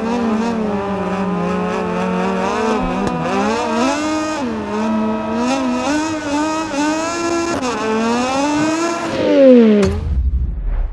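A motorcycle engine screams at high revs, rising and dropping as gears shift.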